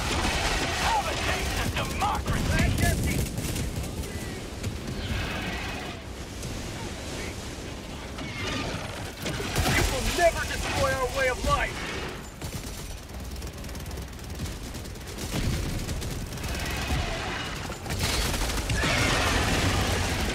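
Explosions rumble in the distance.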